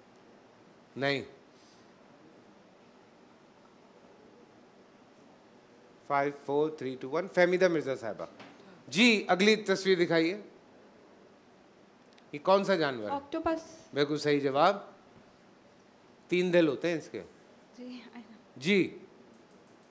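A young man speaks into a microphone in short bursts.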